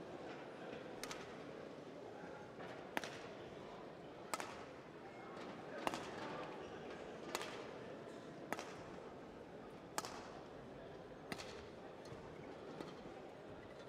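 Shuttlecock hits from rackets crack sharply back and forth in a large echoing hall.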